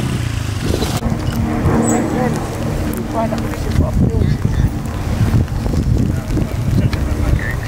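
Young men talk outdoors.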